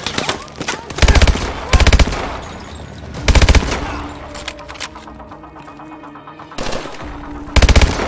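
Rifle fire bursts out in loud rapid volleys.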